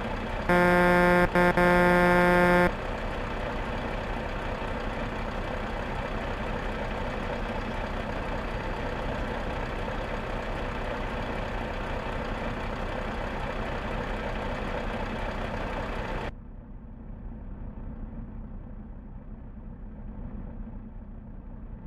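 A truck engine idles steadily, sounding muffled from inside the cab toward the end.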